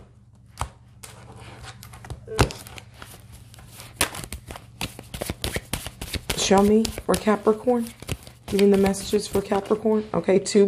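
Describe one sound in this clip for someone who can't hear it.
Playing cards shuffle and riffle with quick soft flicks, close by.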